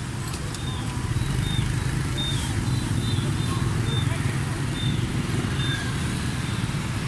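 Car and motorbike tyres whir on the road.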